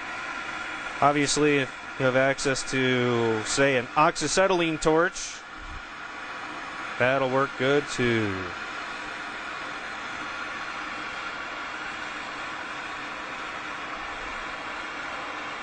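A gas torch flame roars steadily.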